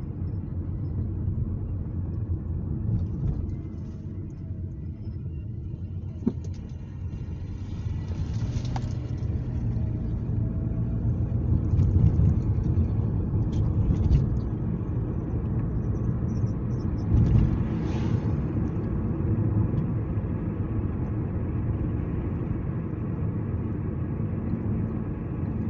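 A car engine hums steadily, heard from inside the cabin.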